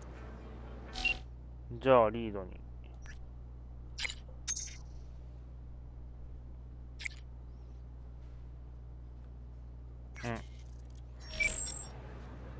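Short electronic interface tones blip and sweep.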